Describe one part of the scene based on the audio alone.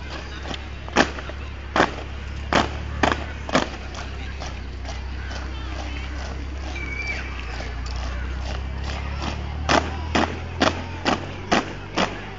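Boots stamp loudly in unison on pavement as a squad marches.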